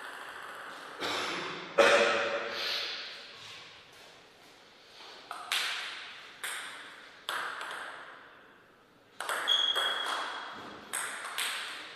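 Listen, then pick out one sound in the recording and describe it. A table tennis ball bounces sharply, ringing in an echoing hall.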